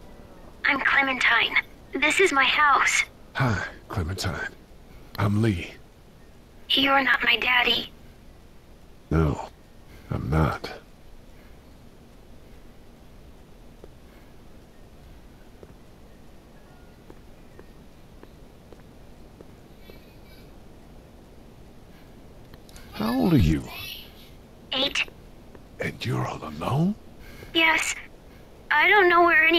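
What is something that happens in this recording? A man speaks in a low, hushed voice, in short bursts.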